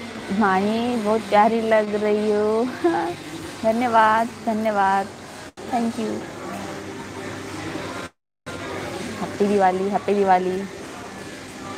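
A young woman speaks animatedly and close to a microphone.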